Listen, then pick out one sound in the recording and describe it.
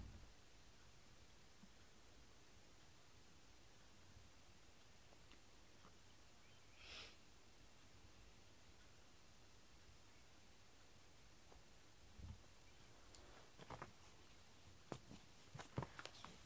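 A cat scratches at a scratching mat.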